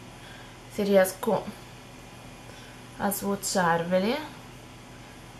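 A young woman speaks calmly and close up in short phrases.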